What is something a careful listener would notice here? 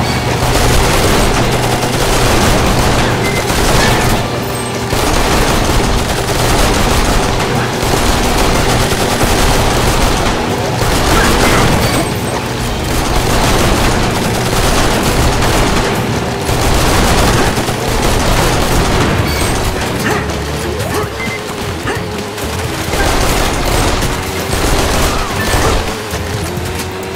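A jet ski engine whines over splashing water.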